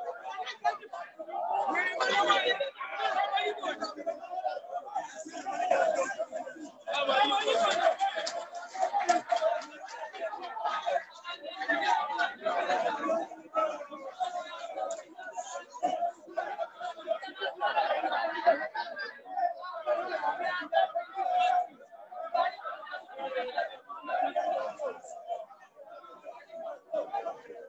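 Men talk loudly over one another close by.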